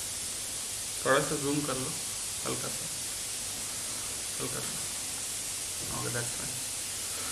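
A man speaks briefly and calmly close to a microphone.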